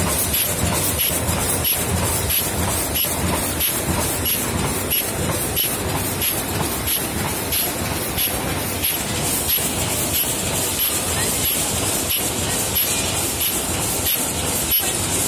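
A large hall of machinery rumbles with a busy background din.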